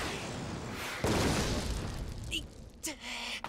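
A heavy crash and rumble of rubble.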